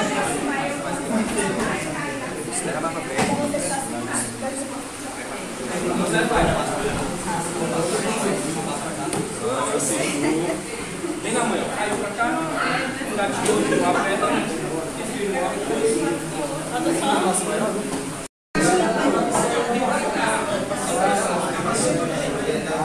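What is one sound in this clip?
A crowd of people talks in an echoing room.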